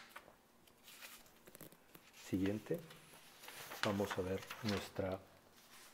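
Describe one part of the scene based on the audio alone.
A sheet of paper rustles as it is turned over.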